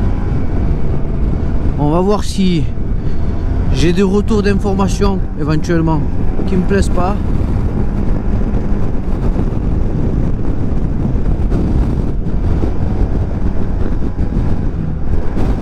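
Wind roars steadily past, outdoors at speed.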